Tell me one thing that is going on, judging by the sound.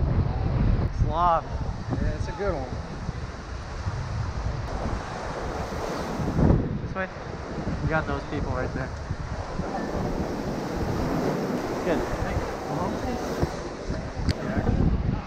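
A young man talks with excitement close by.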